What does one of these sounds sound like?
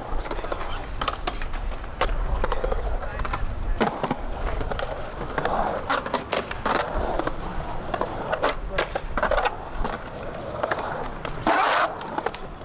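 A skateboard clacks and knocks against concrete and metal.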